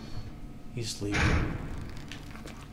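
A heavy metal door slams shut.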